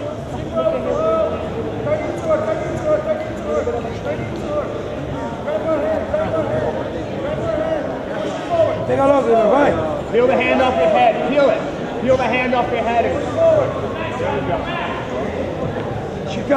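Spectators shout and call out loudly in a large echoing hall.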